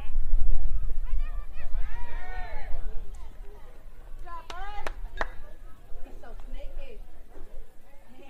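Young players shout out across the field.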